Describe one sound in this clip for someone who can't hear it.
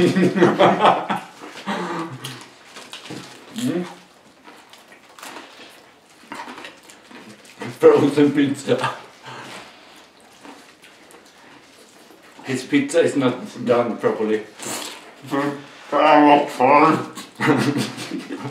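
Two men laugh loudly, close by.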